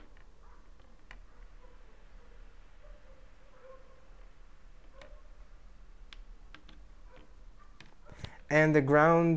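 Wires click softly as they are pushed into a breadboard.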